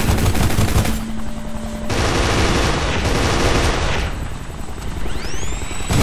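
A rifle fires short bursts of shots.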